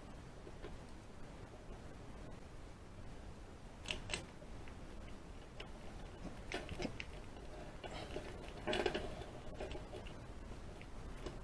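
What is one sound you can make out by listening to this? Metal picks scrape and click inside a padlock.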